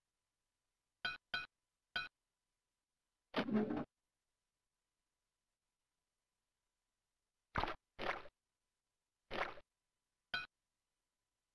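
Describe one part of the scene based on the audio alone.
Short video game sound effects blip and squelch now and then.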